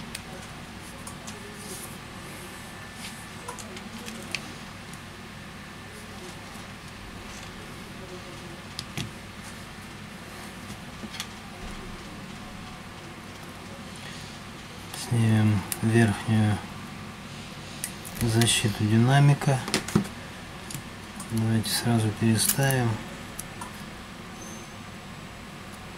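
Small plastic and metal parts click and tap softly.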